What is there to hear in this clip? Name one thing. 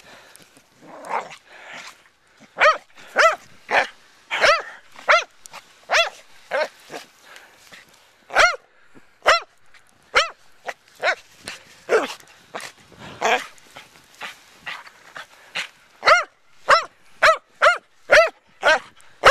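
Snow crunches and swishes as a dog bounds through it.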